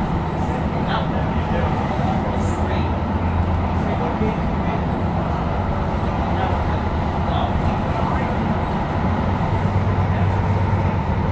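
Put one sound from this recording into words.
An electric light-rail train rumbles along the track, heard from inside the carriage.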